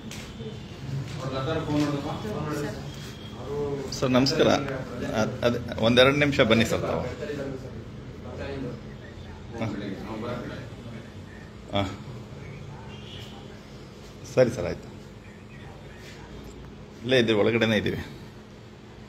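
A man speaks nearby in a calm voice.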